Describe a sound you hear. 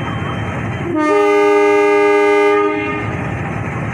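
A locomotive horn blares loudly for about two seconds.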